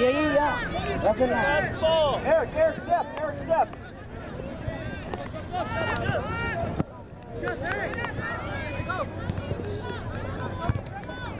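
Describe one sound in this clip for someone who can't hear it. Spectators shout and cheer from the sidelines at a distance.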